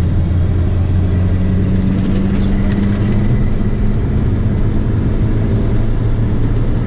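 A car engine drones loudly and steadily from inside the cabin.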